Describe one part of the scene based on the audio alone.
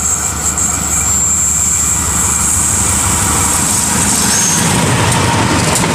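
Train wheels clatter on the rails close by.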